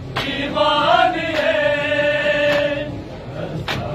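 A man chants loudly.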